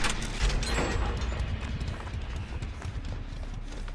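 Footsteps run over grass and brush.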